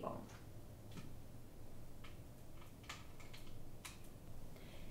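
A cable plug clicks into a socket.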